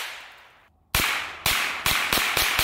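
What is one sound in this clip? A rifle fires a rapid string of shots outdoors.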